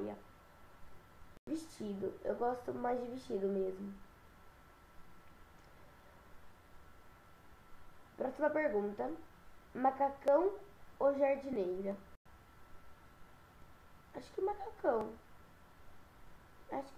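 A girl speaks casually and close by, in short bursts with pauses.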